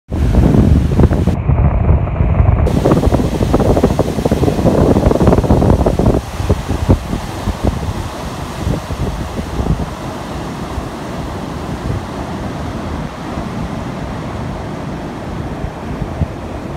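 Wind blows outdoors in rough gusts.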